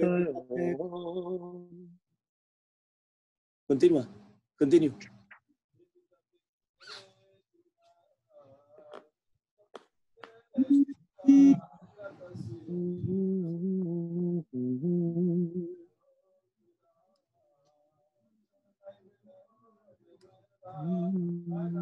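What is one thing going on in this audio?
A man chants and speaks into a microphone, with long pauses.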